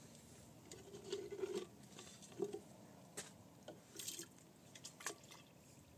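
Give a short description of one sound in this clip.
Plastic water cans knock and clatter on stones.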